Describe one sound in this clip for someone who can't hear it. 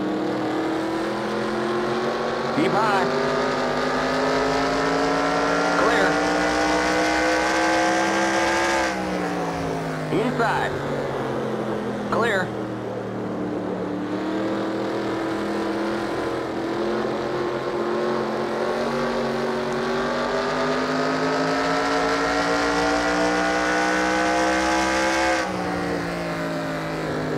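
A race car engine roars loudly, its pitch climbing on the straights and dropping into the turns.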